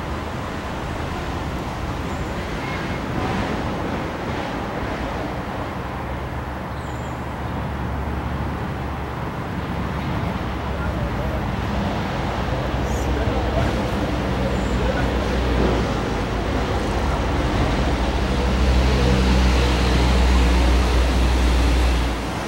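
Water trickles and splashes steadily.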